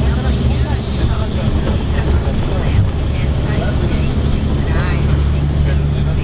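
Traffic passes by on the road outside.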